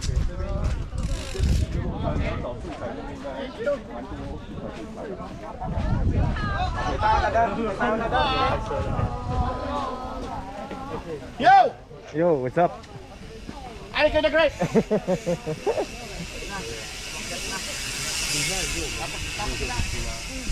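Men talk and call out to each other nearby, outdoors.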